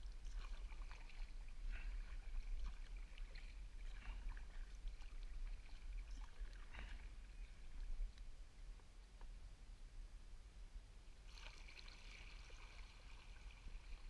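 A kayak paddle dips and splashes in the water.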